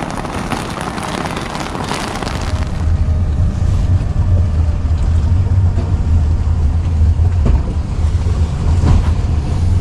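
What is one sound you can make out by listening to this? Cloth rustles and rubs close against the microphone.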